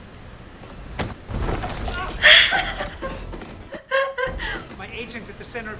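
A young woman laughs and squeals excitedly close to a microphone.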